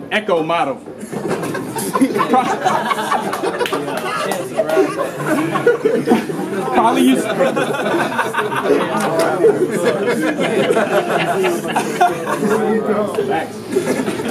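A crowd of men cheers and laughs.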